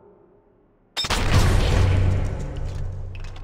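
A suppressed rifle fires once with a sharp, muffled crack.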